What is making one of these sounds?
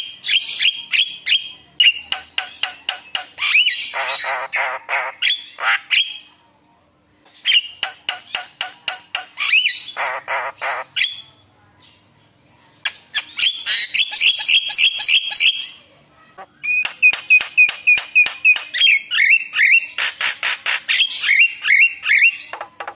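A bird chirps and whistles loudly in rapid bursts close by.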